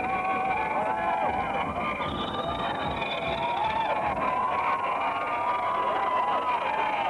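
A crowd shouts and whistles.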